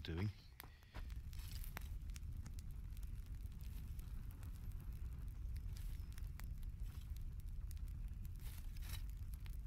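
Coals in a forge crackle and roar.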